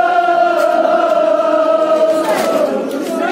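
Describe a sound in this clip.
A man chants a long, drawn-out call in an echoing hall.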